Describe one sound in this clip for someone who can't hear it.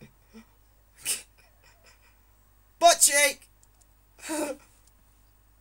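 A teenage boy laughs loudly.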